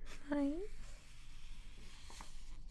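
Glossy magazine pages rustle as they are handled and turned.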